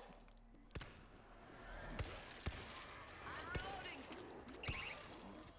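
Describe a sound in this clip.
Heavy boots thud on a hard floor with a slow, steady walk.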